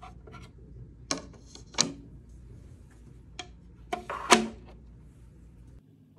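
A plastic panel clicks into place.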